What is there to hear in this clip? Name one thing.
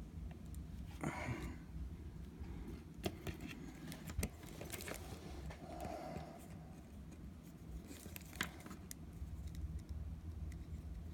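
Plastic toy figures click and knock together as they are handled.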